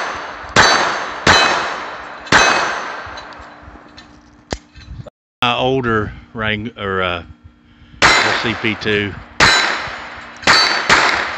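A .22 pistol fires single shots outdoors.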